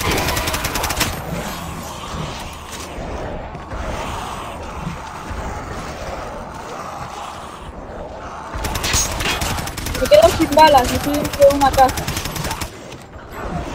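A rapid burst of gunfire rattles.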